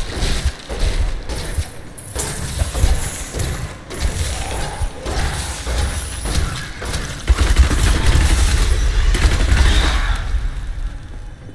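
Weapons strike and creatures screech in combat.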